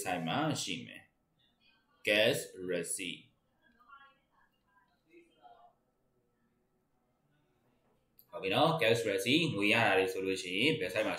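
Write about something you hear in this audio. A man lectures calmly through a microphone, with pauses.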